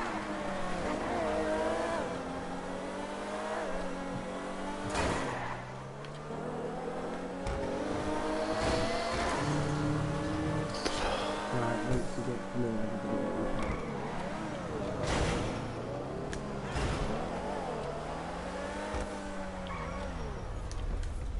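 A sports car engine revs and roars as the car speeds along.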